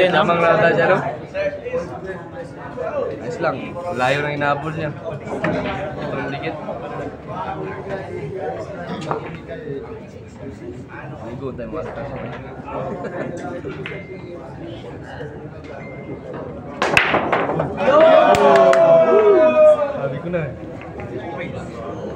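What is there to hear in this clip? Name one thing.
Several men chat nearby in a noisy crowd.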